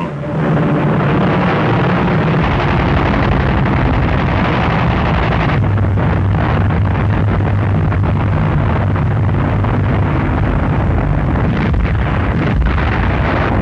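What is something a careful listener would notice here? A propeller aircraft engine drones loudly and steadily.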